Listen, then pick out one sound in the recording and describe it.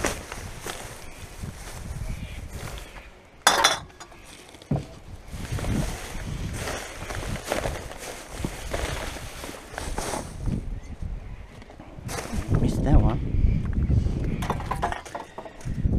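Plastic bags rustle and crinkle as gloved hands dig through rubbish.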